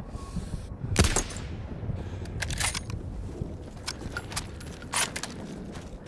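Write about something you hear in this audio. A rifle fires loud sharp shots that echo outdoors.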